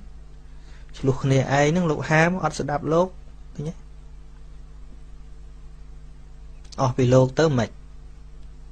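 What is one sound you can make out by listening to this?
A man speaks calmly into a microphone, in short phrases.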